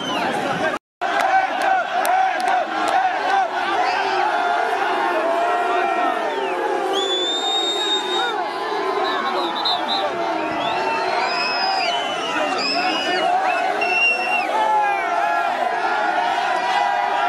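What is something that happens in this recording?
A large crowd of men chants and cheers loudly.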